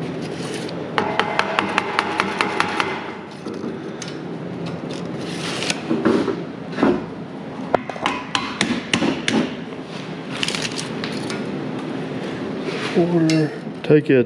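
A metal tape measure rattles and clicks as it extends.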